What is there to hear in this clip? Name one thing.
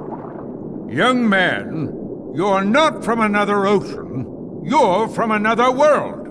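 An elderly man speaks sternly in a deep voice.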